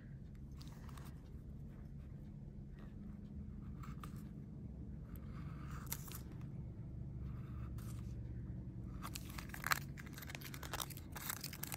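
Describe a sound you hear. A small tool scrapes and clicks against a piece of plastic.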